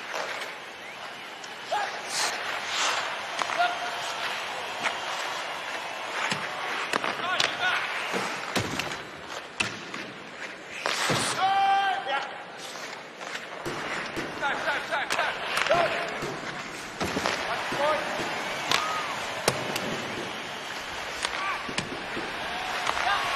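Skates scrape on ice.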